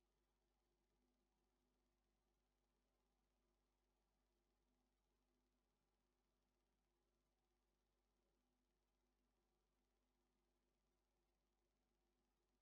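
A truck engine hums steadily.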